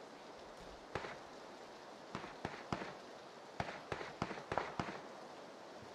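Footsteps tap quickly across a hard tiled floor.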